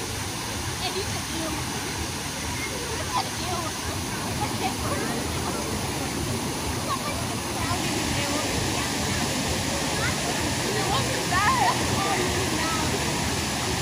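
Children and adults chatter and shout at a distance, outdoors.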